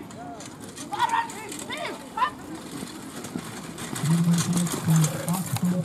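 Carriage wheels roll and rattle.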